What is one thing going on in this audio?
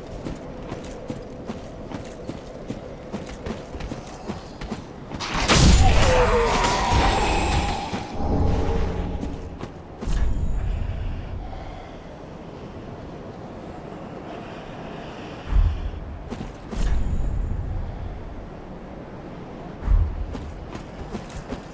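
Armored footsteps clank steadily on rough ground.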